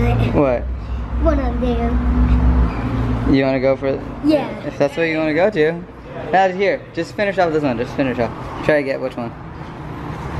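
A young boy talks and laughs excitedly close by.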